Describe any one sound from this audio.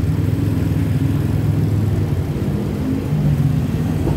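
Traffic rumbles on a busy street.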